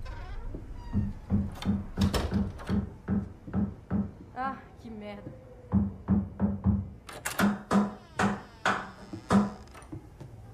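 Knocks land over and over on a wooden door.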